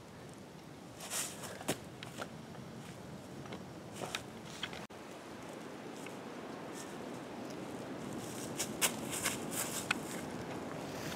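Footsteps crunch on dry leaves.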